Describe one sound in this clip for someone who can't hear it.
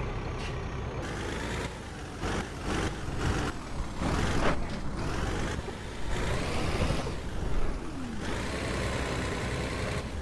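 A truck engine rumbles.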